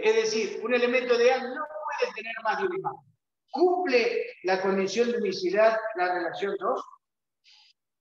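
A middle-aged man explains calmly, close by.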